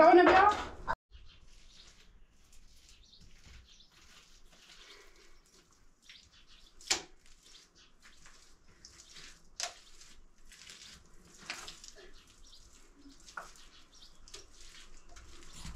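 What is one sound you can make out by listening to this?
A woman smears wet mud on a wall with her hands.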